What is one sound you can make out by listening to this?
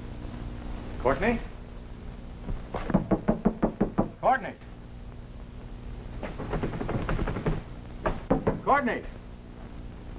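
A man speaks in short, tense bursts.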